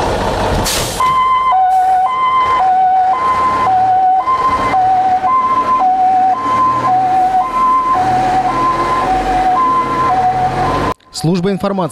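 A fire truck siren wails in a steady two-tone pattern, going back and forth.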